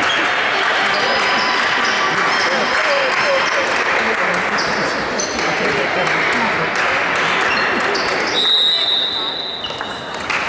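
Sports shoes squeak on a wooden court.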